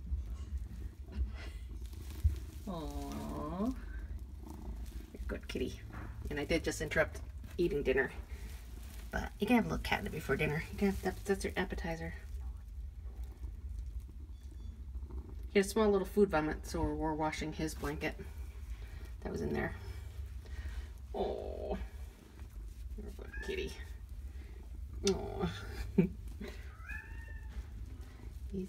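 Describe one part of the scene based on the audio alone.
A cat purrs steadily close by.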